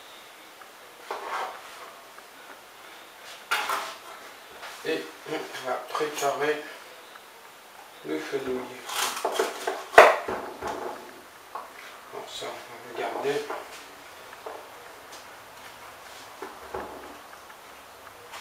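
A knife chops through fennel on a wooden cutting board.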